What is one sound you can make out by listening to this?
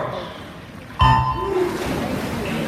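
Swimmers dive and splash into the water in an echoing hall.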